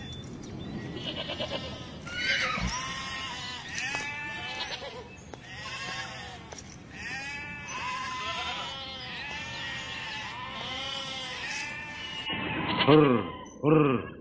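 A herd of goats bleats loudly all around.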